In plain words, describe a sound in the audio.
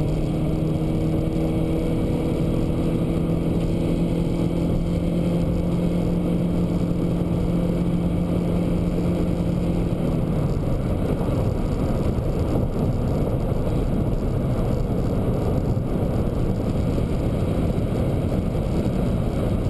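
Tyres roar on a motorway.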